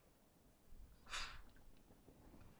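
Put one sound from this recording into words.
An iron hisses with a short burst of steam.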